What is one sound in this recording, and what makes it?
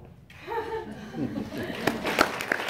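A French horn plays a short, wobbly note, then breaks off.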